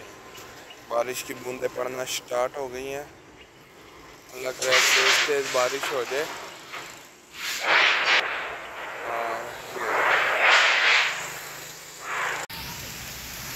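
A man talks close by, with animation.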